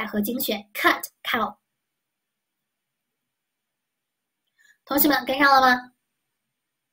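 A young woman speaks calmly and clearly into a close microphone, in short bursts with pauses.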